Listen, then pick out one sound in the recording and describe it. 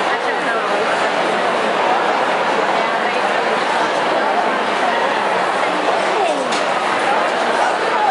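A large crowd of people chatters steadily in an echoing hall.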